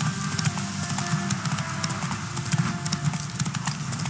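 Grass and bushes rustle as a horse pushes through.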